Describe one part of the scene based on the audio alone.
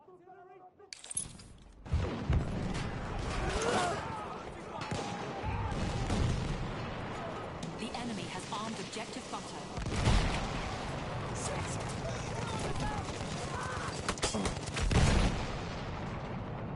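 Rifle shots crack repeatedly.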